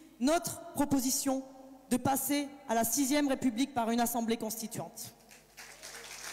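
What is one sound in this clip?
A young woman speaks with animation into a microphone over loudspeakers in a large hall.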